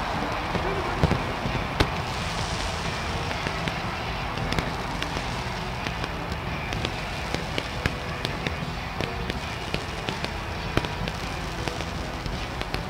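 Fireworks pop and bang.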